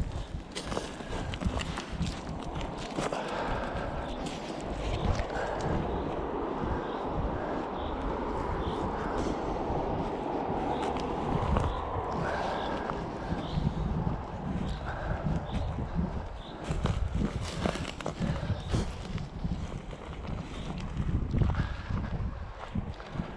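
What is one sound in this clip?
Wind rustles and buffets outdoors.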